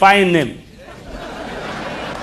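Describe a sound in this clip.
A crowd murmurs and cheers.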